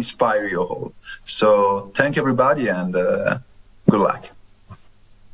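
A young man speaks calmly over an online call through loudspeakers.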